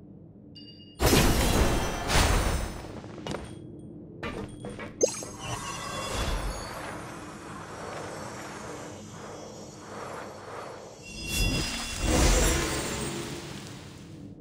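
A magical burst whooshes and shimmers.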